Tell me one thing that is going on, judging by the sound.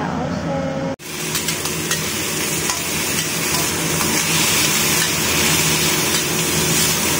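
Food sizzles loudly as it fries in a hot pan.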